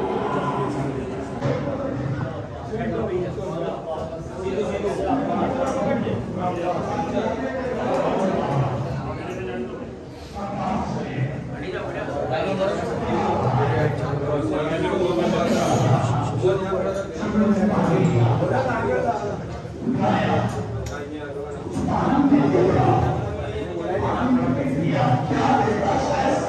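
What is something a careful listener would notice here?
A crowd of men chant loudly together in an echoing stairwell.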